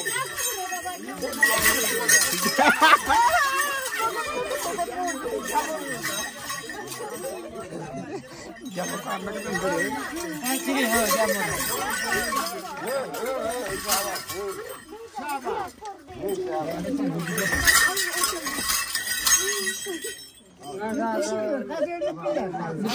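A crowd of men and women talk and call out close by.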